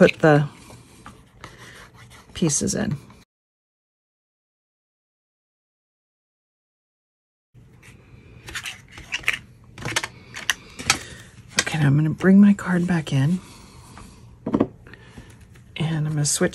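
Paper rustles and taps softly as it is handled.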